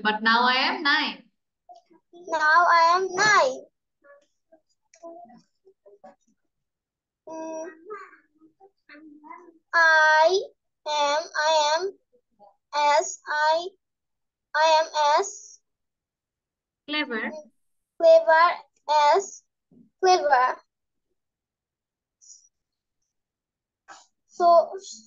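A woman speaks slowly and clearly over an online call, in short bursts with pauses.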